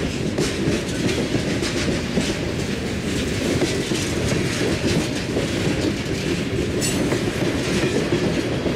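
Steel wheels clack and squeal on the rails.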